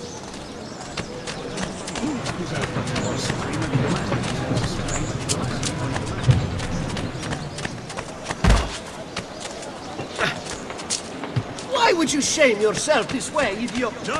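Footsteps run quickly over stone paving.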